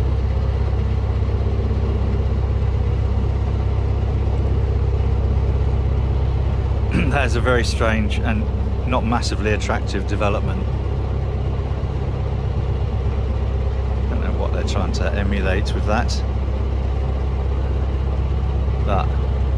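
A boat engine chugs steadily and low throughout.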